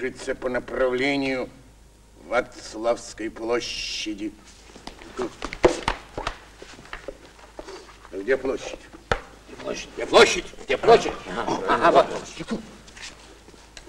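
Several men talk at once with animation, close by.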